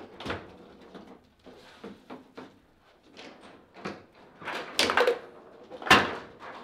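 Foosball rods rattle and thud as players spin and slide them.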